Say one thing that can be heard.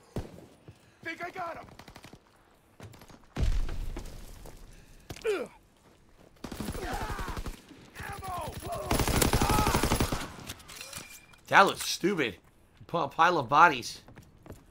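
A man talks with animation, close to a microphone.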